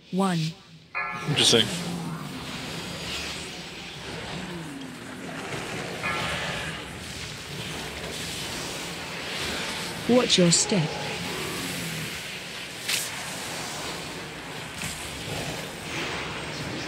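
Spell effects whoosh and crackle in a busy game battle.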